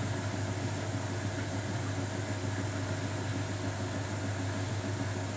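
A front-loading washing machine hums during the wash.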